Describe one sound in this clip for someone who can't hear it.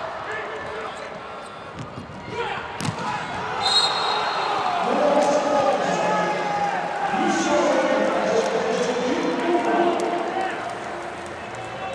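A large crowd in an echoing arena cheers and chants loudly.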